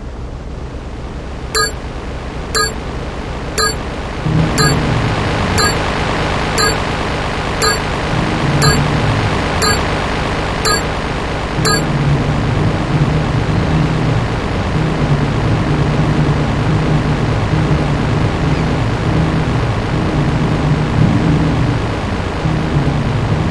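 A speedboat engine drones steadily.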